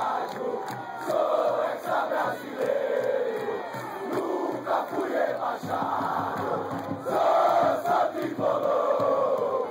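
A large crowd sings and chants loudly in an open stadium.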